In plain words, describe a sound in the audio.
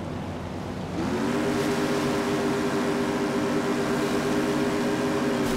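A boat engine hums steadily and loudly.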